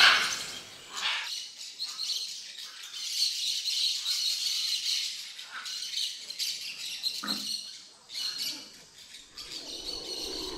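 Parrots squawk and chatter in a group.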